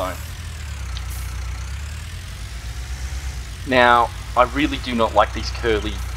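A tractor engine rumbles steadily at idle.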